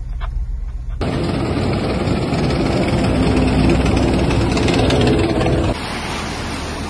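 Water splashes and churns around a moving vehicle.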